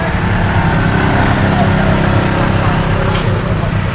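A truck engine idles nearby.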